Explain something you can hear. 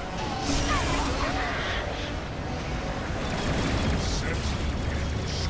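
Magic spells crackle and burst in a fast clash.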